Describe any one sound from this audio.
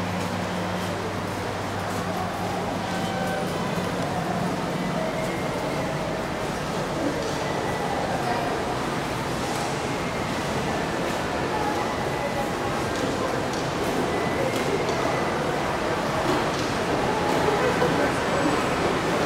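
Footsteps tap on hard paving nearby.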